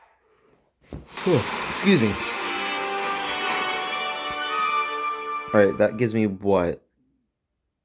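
A short triumphant tune plays.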